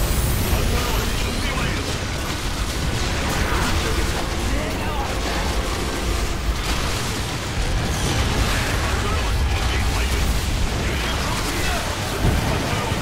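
Rapid gunfire rattles in a game battle.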